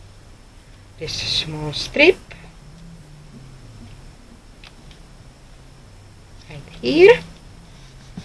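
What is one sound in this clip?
A backing strip peels off sticky tape with a short rasping rip.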